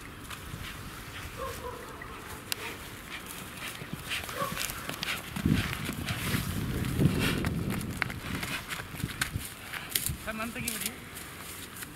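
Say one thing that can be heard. A bull's hooves thud as it trots over the ground.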